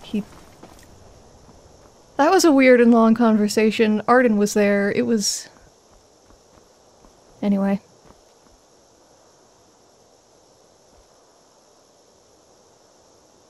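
Footsteps crunch on a stone path.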